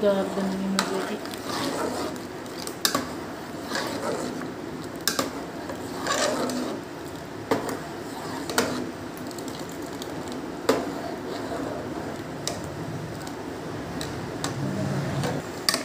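A metal ladle stirs thick porridge in a metal pot, squelching.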